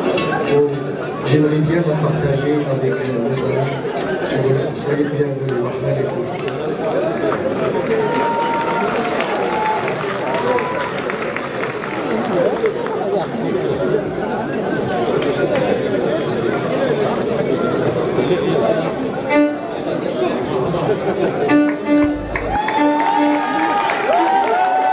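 An electric guitar plays a melody.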